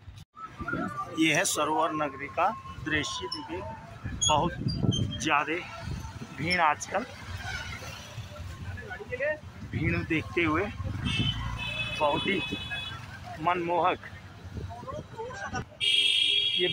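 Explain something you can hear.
Several adults talk nearby in a busy street.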